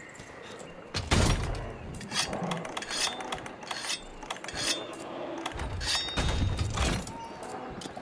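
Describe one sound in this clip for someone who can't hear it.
A large beast stomps and crashes with heavy thuds.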